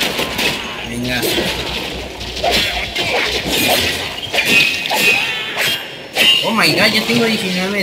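A blade swishes and clangs in quick slashes.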